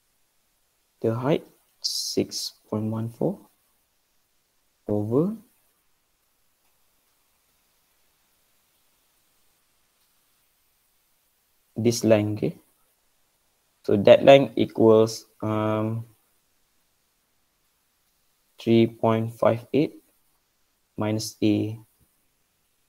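A man speaks calmly through a microphone, in short phrases with long pauses.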